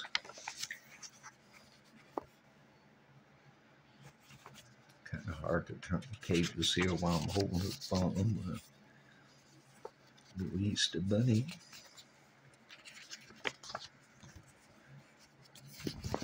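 Paper pages rustle and flap as they are turned by hand.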